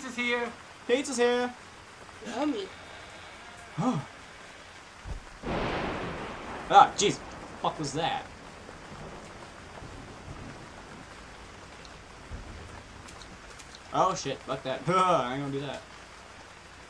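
A young man talks excitedly, heard close through a microphone.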